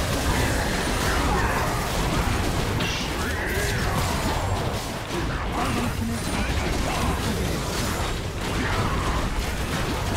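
Game spells crackle and explode in a fast fight.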